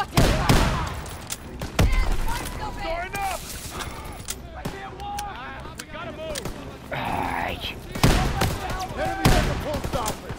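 A shotgun fires loudly several times.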